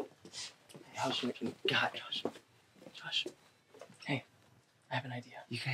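Another young man answers nearby.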